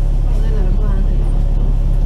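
A heavy truck drives past.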